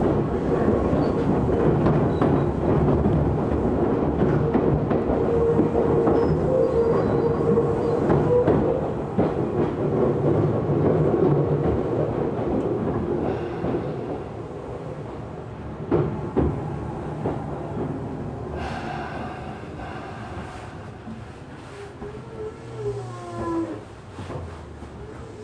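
Wheels of an electric commuter train rumble on the rails, heard from inside the car, slowly quieting as the train slows.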